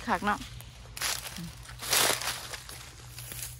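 Dry grass rustles as a hand pushes through it.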